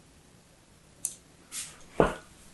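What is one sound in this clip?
Soap cracks and crumbles loudly near the end.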